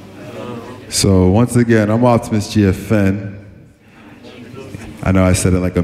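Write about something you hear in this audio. A man sings loudly into a microphone over a loudspeaker system.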